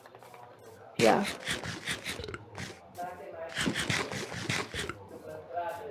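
Chewing and crunching sounds come in quick bursts.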